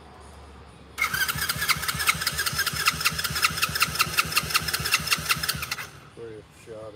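An engine's starter cranks rapidly, then stops.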